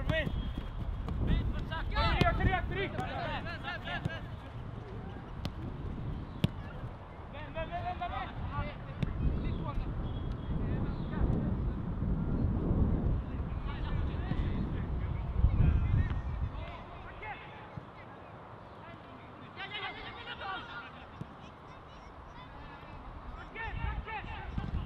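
Young players shout to each other across an open field.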